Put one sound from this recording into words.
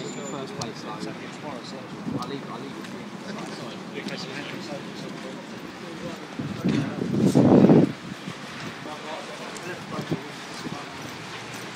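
Footsteps walk on pavement outdoors.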